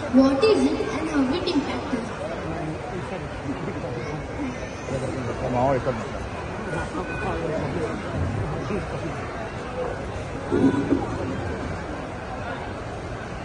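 Music plays through loudspeakers.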